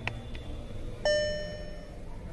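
A car's warning chime beeps briefly.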